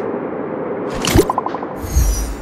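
A short electronic chime sounds for a new message.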